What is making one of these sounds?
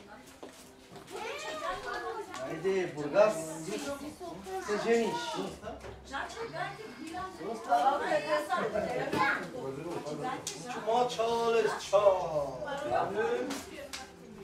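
Several adults talk with animation nearby, their voices overlapping.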